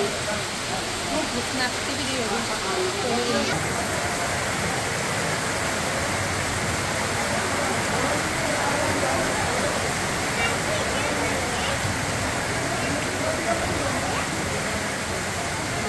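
Heavy rain pours down steadily outdoors.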